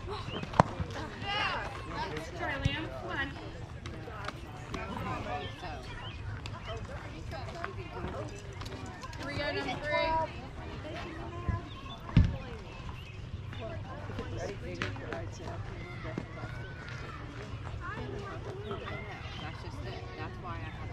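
Young players call out and shout across an open field.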